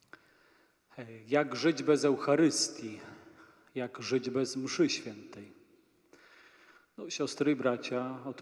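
A man sings a chant through a loudspeaker in a large echoing hall.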